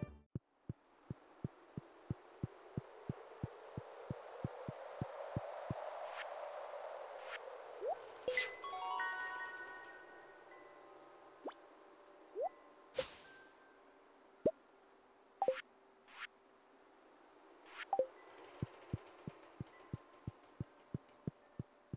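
Footsteps tap quickly and evenly on a wooden floor.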